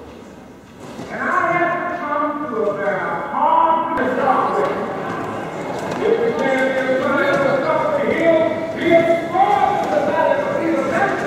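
A group of people sing together in an echoing hall.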